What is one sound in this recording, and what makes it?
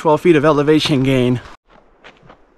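A man speaks cheerfully and close up.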